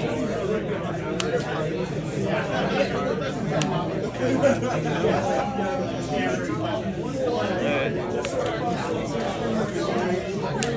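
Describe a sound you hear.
Playing cards slide and tap softly on a mat.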